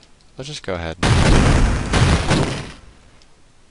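A heavy gun fires with a loud, rumbling blast.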